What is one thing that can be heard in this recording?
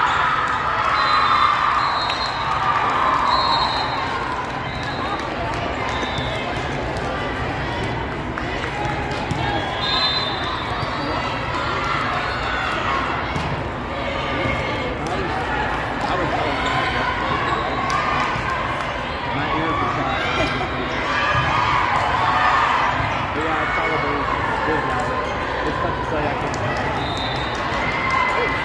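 Sneakers squeak on a court floor now and then.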